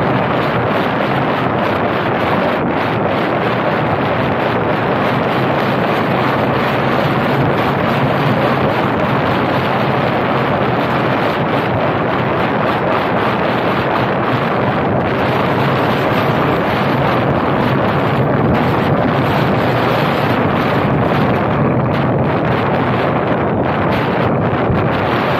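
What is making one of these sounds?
A car drives along on asphalt, its tyres rumbling.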